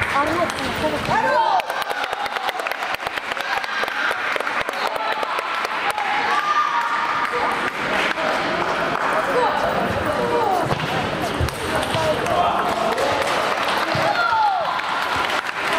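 A table tennis ball clicks sharply back and forth off paddles and a table.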